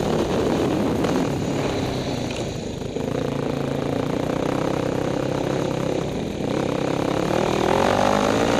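A dirt bike engine roars and revs up close.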